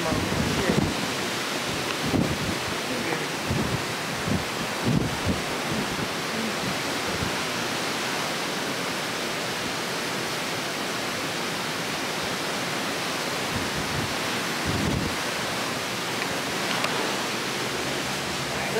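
Churning wake water rushes and foams steadily below.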